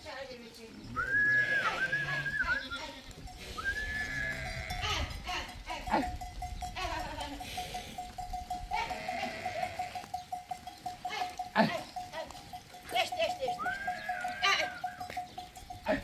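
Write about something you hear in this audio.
Sheep and goats bleat nearby.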